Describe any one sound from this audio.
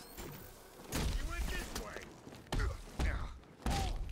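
An icy blast bursts with a crackling hiss.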